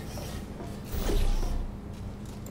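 A portal opens with a humming whoosh.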